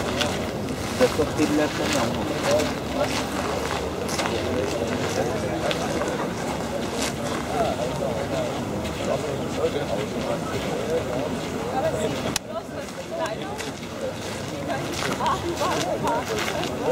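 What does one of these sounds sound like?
Men talk casually nearby, with a crowd murmuring outdoors.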